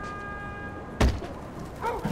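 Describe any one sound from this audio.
A wooden crate thuds down into a van.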